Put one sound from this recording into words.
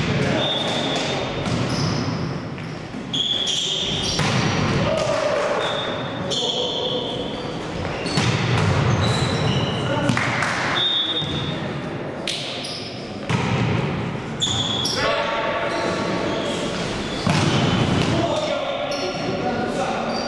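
Young men call out to each other across the hall.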